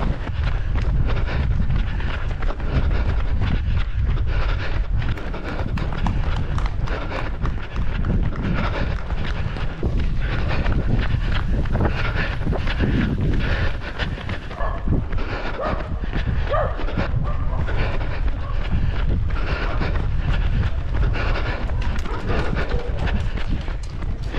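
Wind rumbles loudly across a microphone outdoors.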